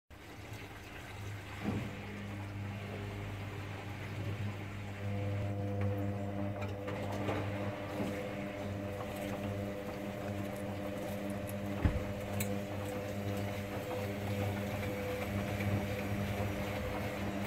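Laundry tumbles and thumps softly inside a washing machine drum.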